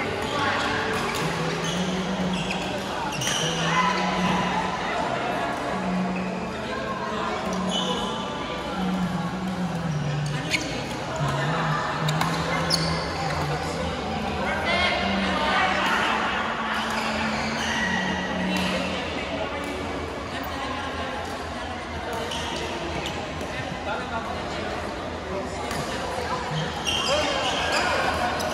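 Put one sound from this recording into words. Many men and women chatter in the background of a large echoing hall.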